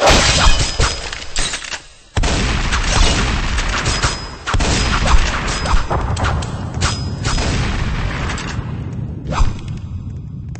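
A shotgun fires in loud, booming blasts.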